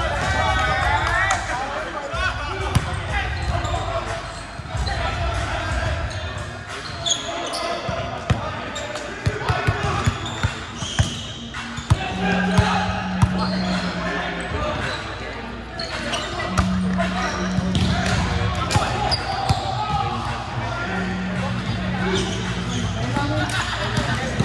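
Young men and women call out and chatter across a large echoing hall.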